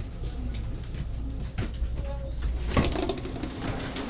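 A train door slides open with a clunk.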